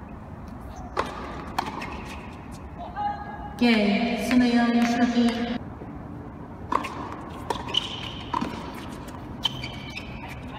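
A tennis ball is hit back and forth with rackets in sharp pops.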